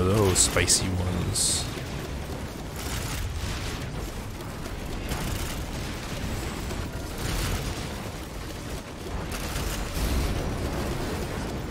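Weapons fire in quick bursts of shots.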